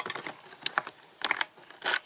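Keys jingle and scrape in a lock.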